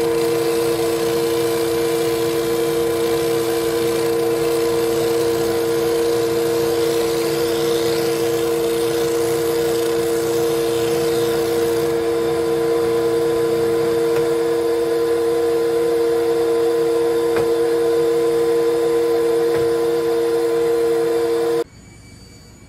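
A machine hums loudly and steadily, then shuts off.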